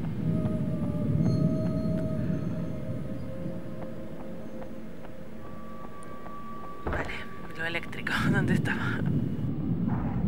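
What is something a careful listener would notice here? Footsteps tread on pavement.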